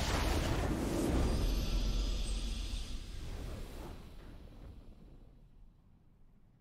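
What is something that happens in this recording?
A triumphant game fanfare booms loudly and then fades away.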